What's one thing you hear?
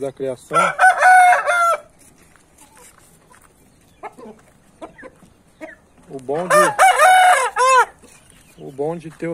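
Chickens cluck softly.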